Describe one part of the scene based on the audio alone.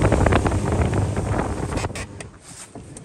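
Wind rushes past over choppy water.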